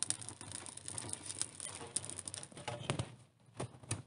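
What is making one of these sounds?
A wood fire crackles and hisses.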